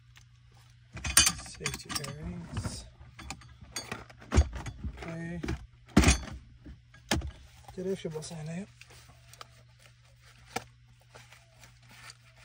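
Gear clicks and rattles as a man handles it.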